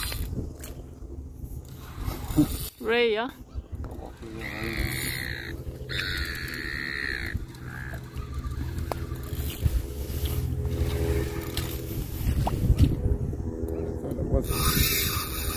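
A fishing reel clicks and whirs as its handle is wound.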